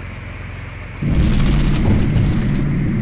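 A propeller engine suddenly roars much louder.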